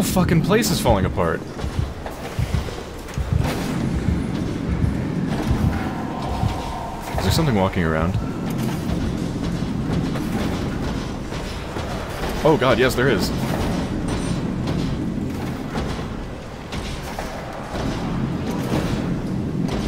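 Machinery hums low and steadily in a large echoing space.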